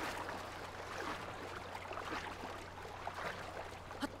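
Water splashes and swirls.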